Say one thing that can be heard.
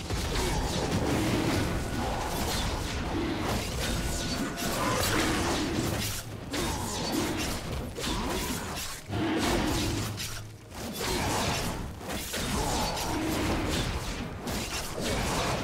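Magic spells and weapon hits crackle and clash in a fantasy battle.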